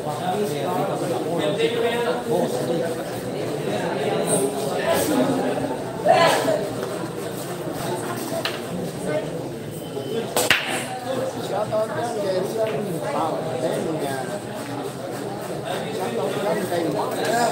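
A crowd of young men chatters nearby.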